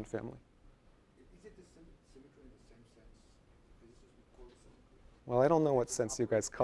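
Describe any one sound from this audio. A man lectures, speaking into a microphone in an echoing room.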